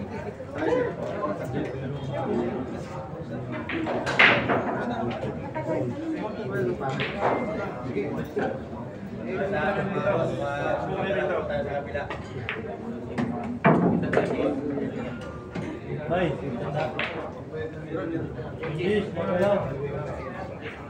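A crowd of people murmurs and chatters nearby in an echoing room.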